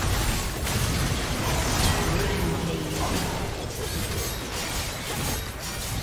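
Game spell effects crackle and burst in a fight.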